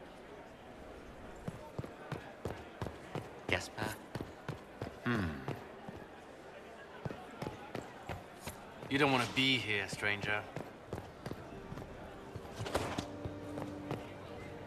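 Footsteps tap steadily across a hard stone floor in a large echoing hall.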